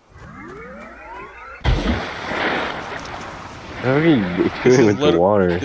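A plasma gun fires a burst of rapid shots.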